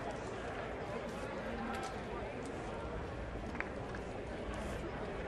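A crowd of spectators murmurs and chatters outdoors.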